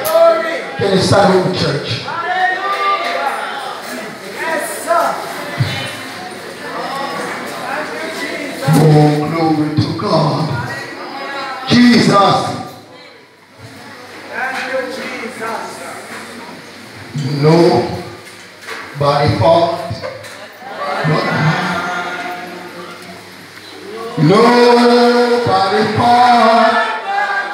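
A man speaks loudly and with animation into a microphone, heard through loudspeakers in an echoing hall.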